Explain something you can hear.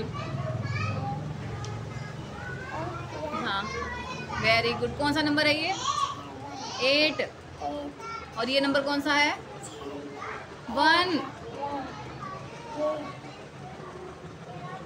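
A young girl talks and sings with animation close to a microphone.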